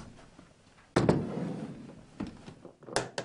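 A metal case is set down on a wooden desk with a thud.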